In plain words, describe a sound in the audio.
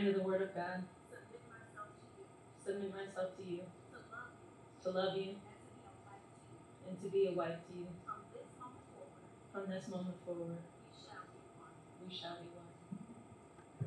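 A young woman speaks softly into a microphone, in short phrases with pauses.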